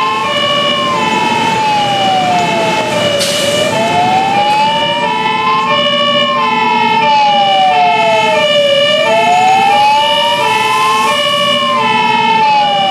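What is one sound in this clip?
A fire engine siren wails, slowly rising and falling.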